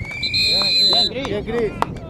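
A referee's whistle blows a long shrill blast.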